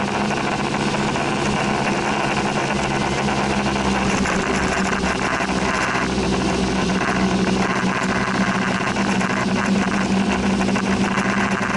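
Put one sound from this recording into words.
Rain patters steadily on a car windscreen.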